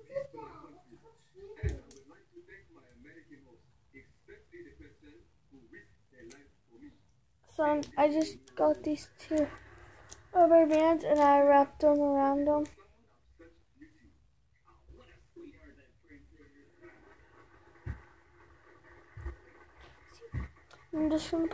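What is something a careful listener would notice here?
A young girl talks quietly close by.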